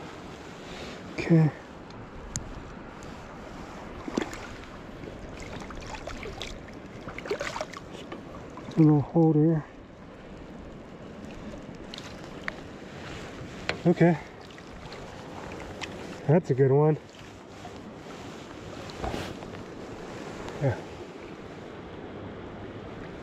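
Shallow river water flows and laps steadily outdoors.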